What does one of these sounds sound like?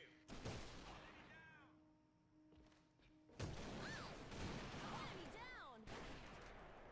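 A rifle fires with loud, booming cracks.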